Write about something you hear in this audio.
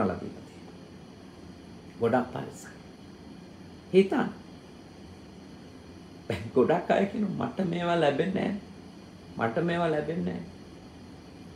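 A man speaks calmly and warmly into a close microphone, in short phrases with pauses.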